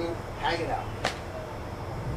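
A slap smacks sharply against skin.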